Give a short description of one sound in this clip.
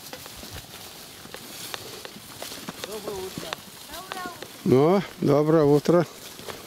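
Cattle hooves shuffle and knock on dry ground.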